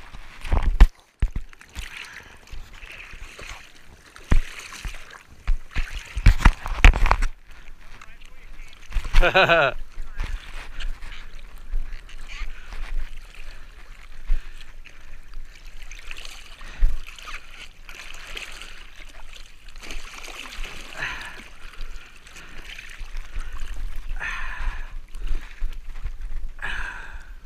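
Water splashes and laps against a surfboard close by.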